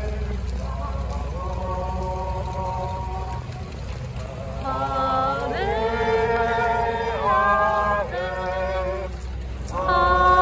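Footsteps of a crowd shuffle across a street outdoors.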